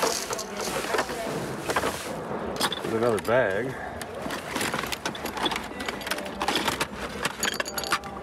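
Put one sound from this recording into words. Plastic wrappers and paper rustle and crinkle as a hand rummages through a bag.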